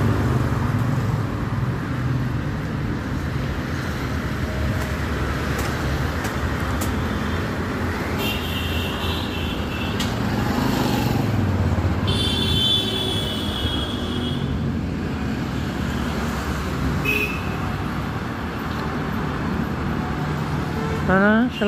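Steady traffic rumbles along a street outdoors.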